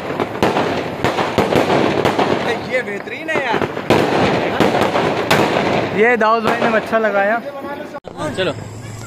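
Fireworks burst and crackle loudly overhead.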